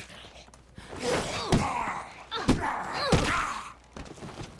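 Blows thud in a close scuffle.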